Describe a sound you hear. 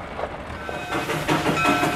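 A steam locomotive chugs slowly along the tracks.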